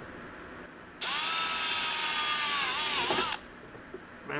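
A cordless drill whirs steadily, driving a screw.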